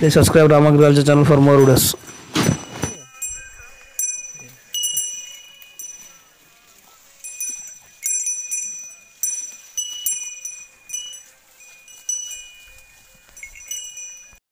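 A cow tears and chews leaves up close.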